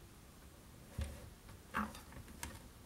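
A paper trimmer's blade slides along and cuts paper.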